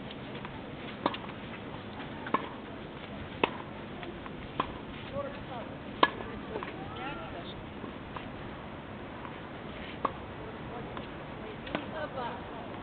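Tennis balls are struck with rackets in sharp pops, back and forth.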